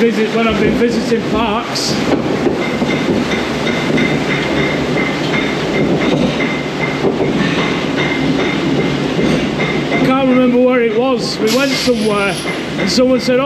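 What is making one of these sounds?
A ride car rumbles and rattles steadily along a track.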